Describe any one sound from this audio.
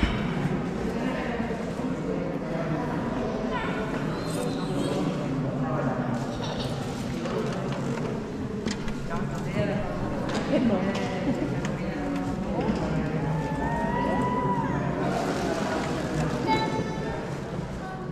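Many people murmur and talk quietly in a large echoing hall.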